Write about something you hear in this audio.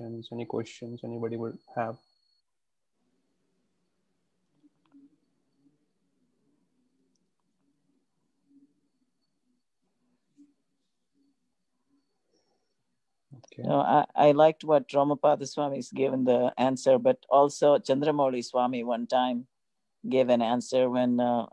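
A man speaks calmly through an online call, pausing at length.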